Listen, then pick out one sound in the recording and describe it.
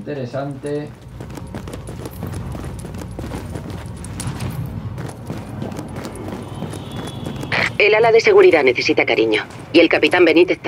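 Footsteps walk steadily over a hard floor.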